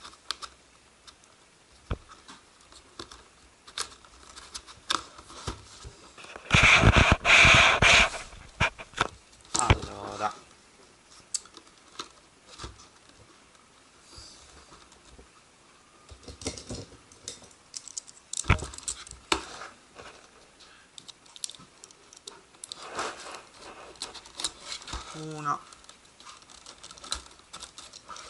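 A cardboard box rustles and taps as hands handle it close by.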